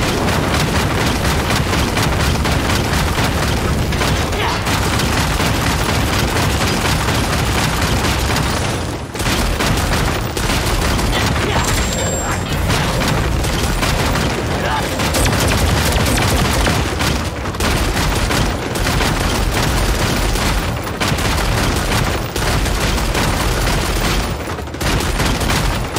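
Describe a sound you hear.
Magic spells burst and crackle loudly in a fight.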